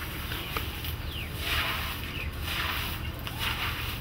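Hands scrape and rustle through loose dry earth.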